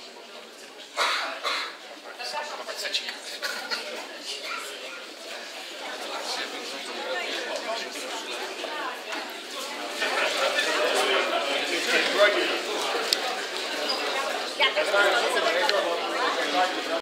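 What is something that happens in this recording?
A crowd of adults chatters loudly in an echoing room.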